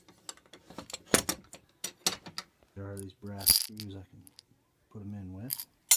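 Screws rattle inside a glass jar.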